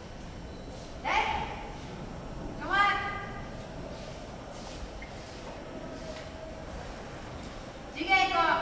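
A young man lets out loud, sharp, drawn-out shouts in an echoing hall.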